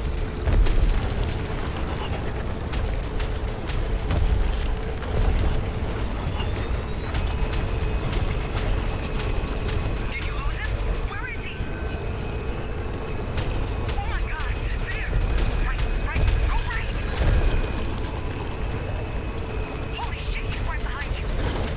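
A motorbike engine roars steadily.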